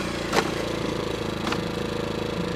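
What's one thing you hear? Wood knocks as it is set down.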